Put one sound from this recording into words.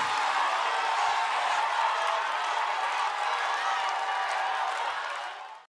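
A large crowd cheers and sings loudly in a big echoing hall.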